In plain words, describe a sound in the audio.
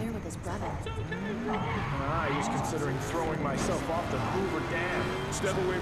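A car engine revs and drives off.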